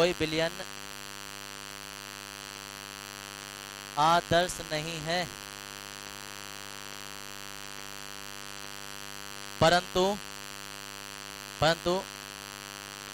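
A man speaks calmly in short phrases through a microphone.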